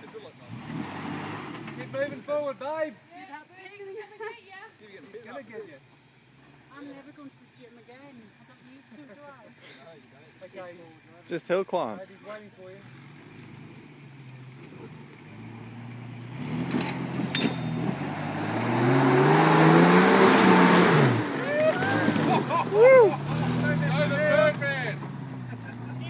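An off-road vehicle's engine rumbles and revs hard as it climbs a steep slope.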